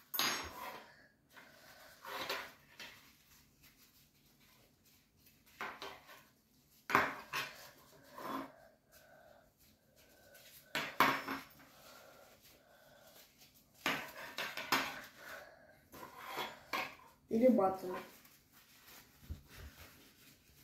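Paper napkins rustle and crinkle.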